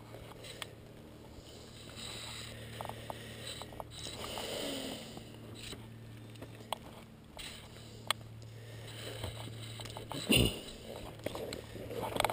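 Dry branches scrape and rustle against a backpack.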